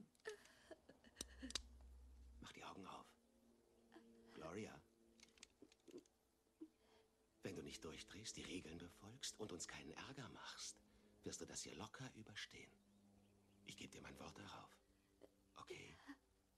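A woman speaks softly and emotionally close by.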